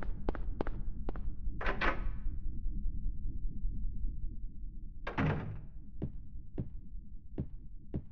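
Footsteps knock slowly on a hard floor.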